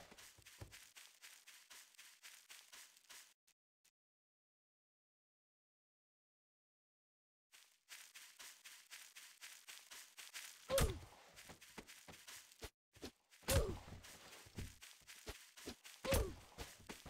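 Quick footsteps patter across grass.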